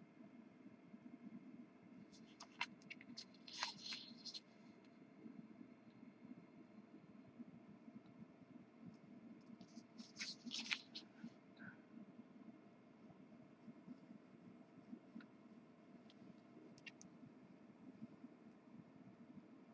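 A marker squeaks and scratches softly across paper.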